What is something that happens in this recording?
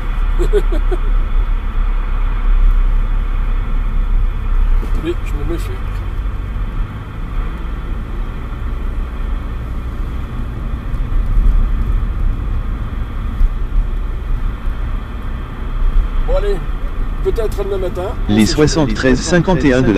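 A car engine hums steadily with road rumble as the car drives.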